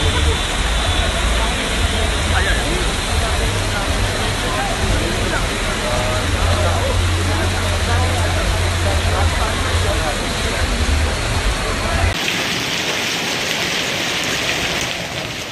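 Hail pelts the ground in a dense, steady patter.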